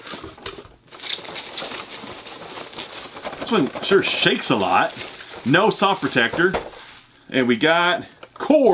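A plastic bag crinkles as it is pulled open.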